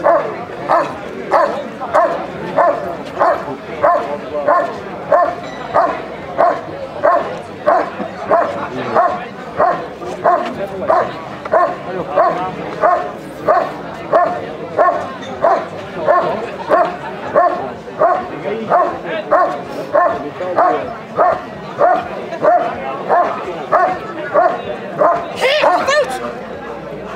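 A dog barks steadily and rhythmically close by.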